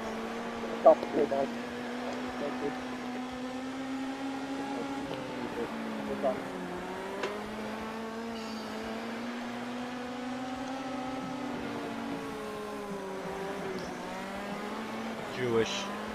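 A racing car engine roars steadily, its pitch rising and falling as it speeds up and slows down.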